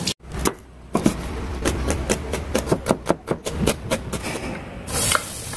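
A cleaver chops quickly on a cutting board.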